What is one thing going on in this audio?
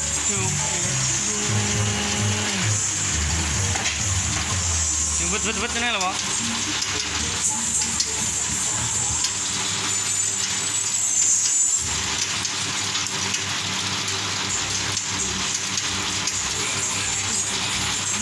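A machine whirs and rattles steadily.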